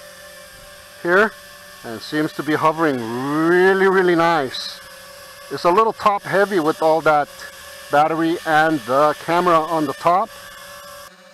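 A small drone's motors whine, revving up and down as it flies close by.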